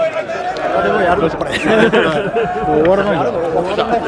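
An older man laughs and greets cheerfully up close.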